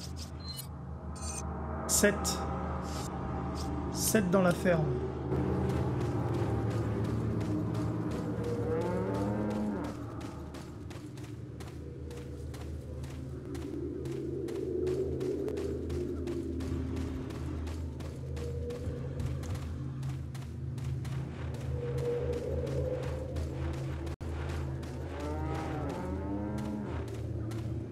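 Low, brooding music plays steadily.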